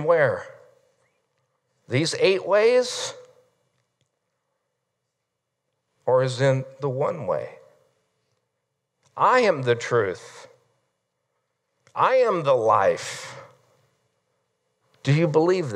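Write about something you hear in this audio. A middle-aged man speaks with animation through a microphone in a room with some echo, pausing between phrases.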